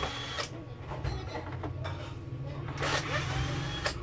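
A power screwdriver whirs as screws are driven out.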